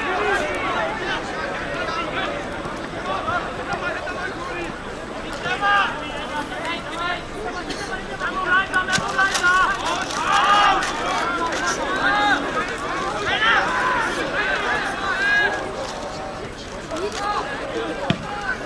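A large crowd outdoors chatters and shouts.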